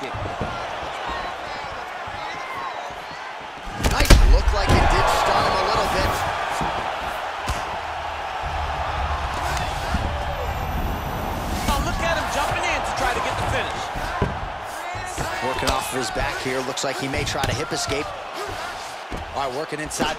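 A large crowd cheers and roars, swelling loudly at a knockdown.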